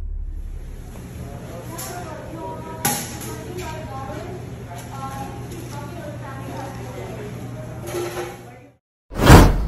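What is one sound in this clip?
Voices murmur in the background.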